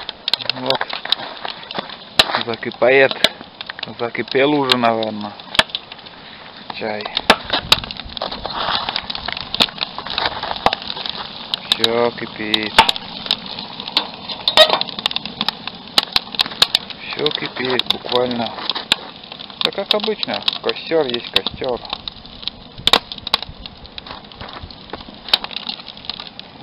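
A wood fire crackles and pops close by.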